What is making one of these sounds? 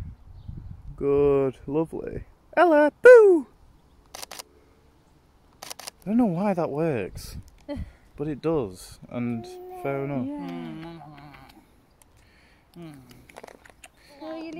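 A young woman talks playfully and coos nearby.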